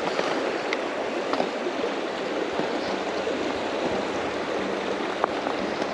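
A fishing reel clicks as line is pulled off.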